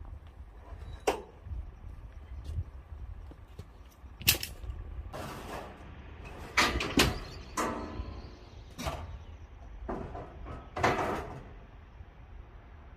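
Metal clanks and knocks as a man secures a car on a trailer.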